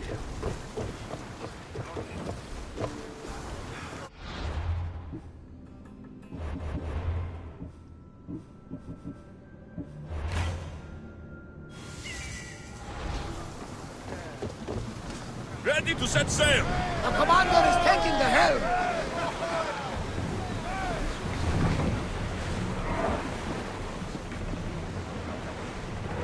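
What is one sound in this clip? Water laps against a wooden ship's hull.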